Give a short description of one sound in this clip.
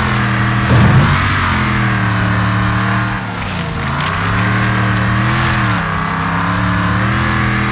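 Tyres skid and scrape on loose dirt.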